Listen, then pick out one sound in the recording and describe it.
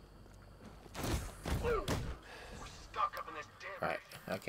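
Heavy punches thud in a close fight.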